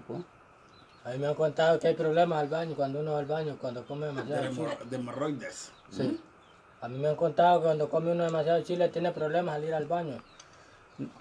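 An elderly man hums a tune close by.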